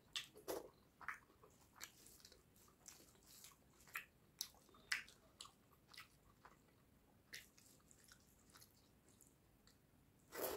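Fingers squish and mix soft rice and curry close up.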